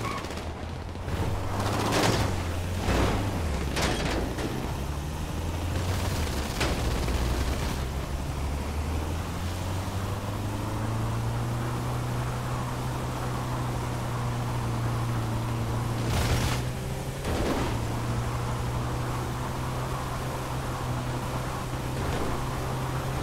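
A van engine revs and drones.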